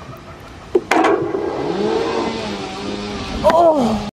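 A golf ball rolls across artificial turf.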